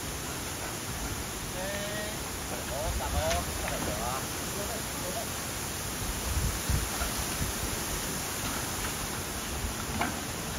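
Bamboo leaves rustle and swish as a man drags a fallen stalk.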